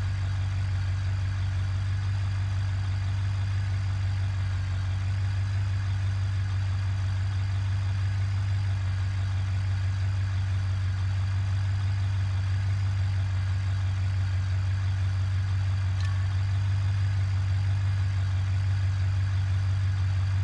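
A pickup truck's engine idles with a steady low rumble.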